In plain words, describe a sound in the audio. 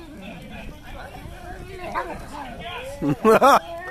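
A bonfire roars and crackles.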